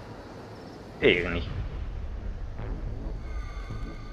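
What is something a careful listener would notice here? An explosion booms with a deep rumble that lingers.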